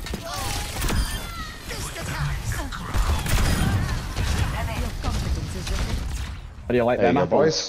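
A weapon fires with loud thumps and explosions.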